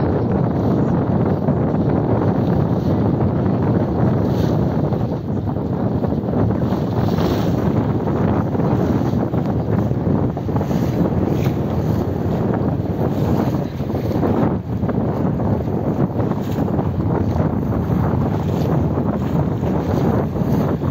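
Strong wind buffets outdoors with a steady low rumble.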